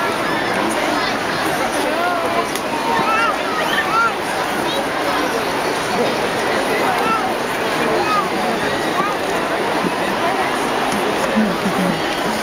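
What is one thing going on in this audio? A large stadium crowd murmurs and chatters steadily all around.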